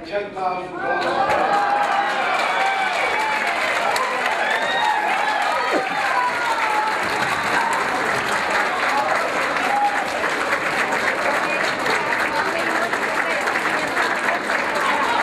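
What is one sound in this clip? A crowd chatters and cheers.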